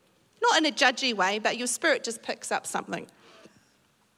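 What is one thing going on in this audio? A middle-aged woman speaks with emphasis into a microphone in a large echoing room.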